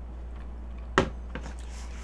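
A metal fork clinks against a plate.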